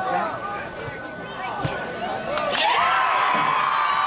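A ball is kicked hard once.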